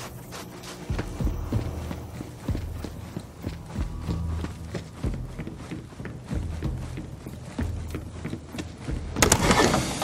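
Footsteps crunch steadily over hard ground.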